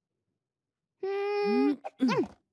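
A young boy shouts excitedly.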